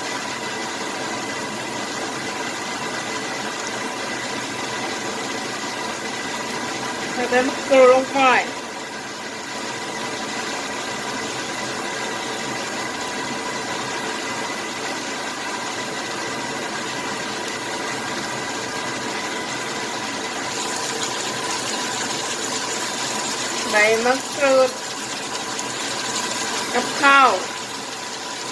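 A thick sauce bubbles and simmers in a pan.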